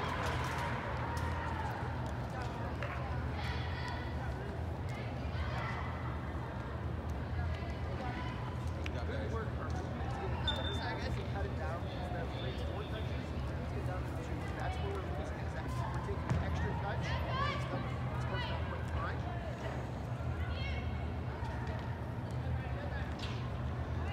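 A crowd of spectators murmurs and chatters in the background.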